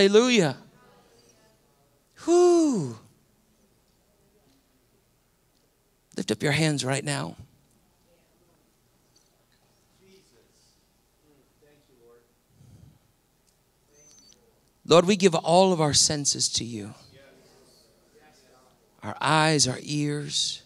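A middle-aged man speaks with animation through a microphone, in short bursts with long pauses.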